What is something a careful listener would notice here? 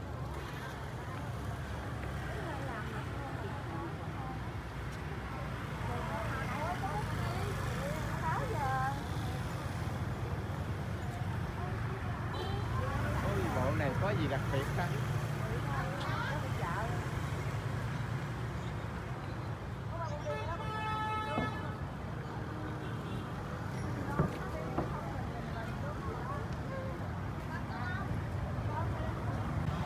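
A busy crowd murmurs and chatters outdoors in a street.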